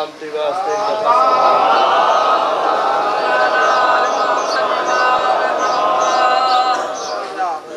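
A man chants loudly in a long, drawn-out melodic wail.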